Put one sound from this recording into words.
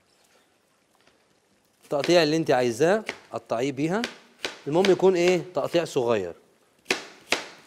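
A knife chops cabbage on a cutting board.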